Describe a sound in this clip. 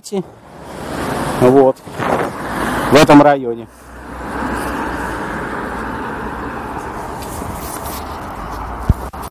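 Wind rushes steadily past outdoors.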